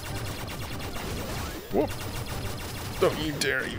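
Rapid electronic blaster shots fire in a video game.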